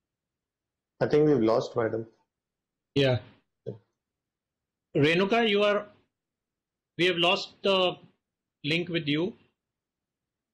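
A man speaks calmly over an online call, in short bursts with pauses.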